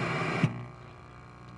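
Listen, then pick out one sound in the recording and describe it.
Television static hisses and crackles.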